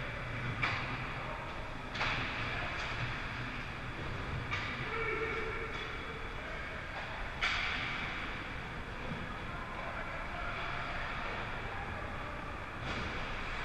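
Hockey sticks and a puck clack sharply now and then, echoing in a large rink.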